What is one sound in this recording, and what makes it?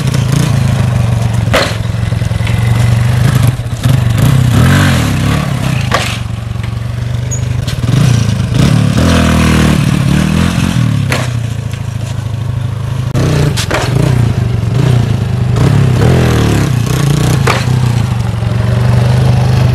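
A motorcycle engine revs hard and idles close by.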